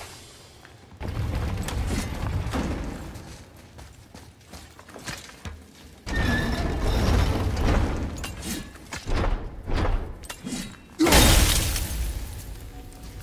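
Heavy wooden gears grind and rattle as they turn.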